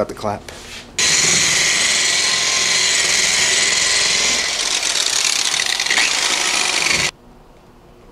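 An electric polisher whirs steadily at high speed.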